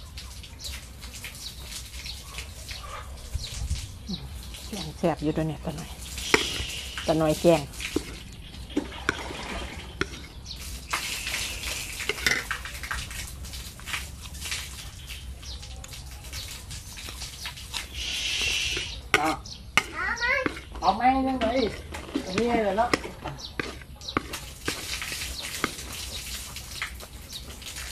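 A woman chews and crunches food with smacking sounds.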